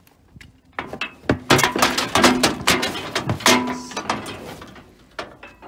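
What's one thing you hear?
A cow moos loudly close by.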